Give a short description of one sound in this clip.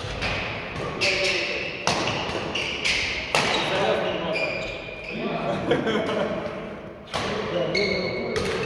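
Shoes squeak on a sports floor.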